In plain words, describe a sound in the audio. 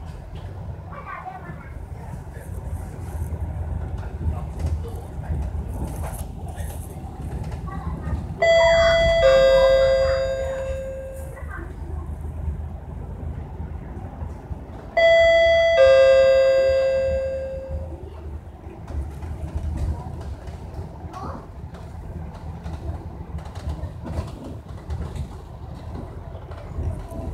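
A bus engine rumbles low and steady as the bus drives along.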